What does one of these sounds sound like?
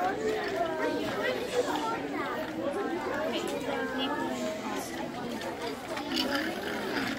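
Many children and adults chatter at once in a busy room.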